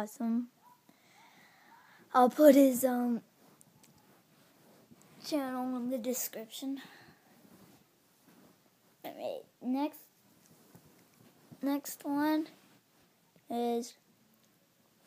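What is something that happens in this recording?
A young boy talks close to the microphone in short bursts.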